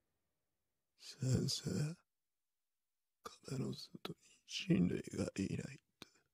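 A young man speaks hesitantly, with pauses.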